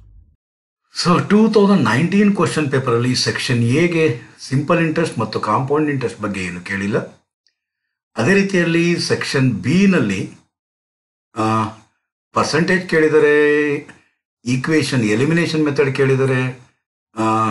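A middle-aged man talks calmly into a close microphone, explaining.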